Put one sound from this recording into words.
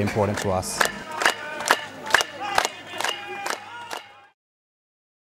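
A group of dancers chants outdoors.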